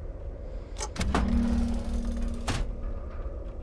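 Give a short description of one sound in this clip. A box lid springs open with a chime.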